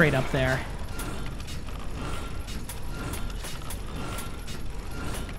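Metal gears click into place.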